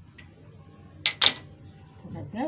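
A plastic ruler clatters down onto a table.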